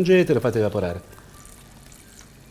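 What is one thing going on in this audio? Liquid pours into a pot.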